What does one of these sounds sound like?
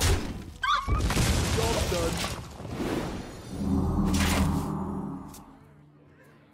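Game effects whoosh and crash loudly, then fade.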